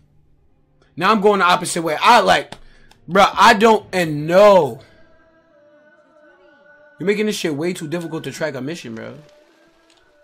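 A young man talks excitedly and loudly into a close microphone.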